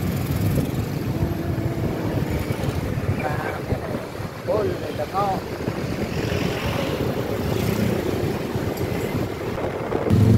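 Traffic passes by on a busy street.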